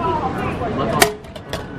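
A token clatters into a metal tray.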